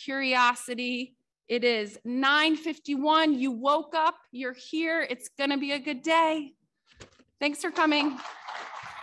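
A woman speaks with animation into a microphone in an echoing hall.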